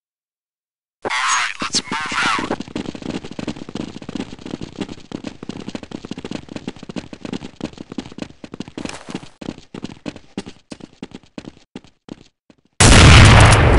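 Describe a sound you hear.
Footsteps run quickly across hard stone.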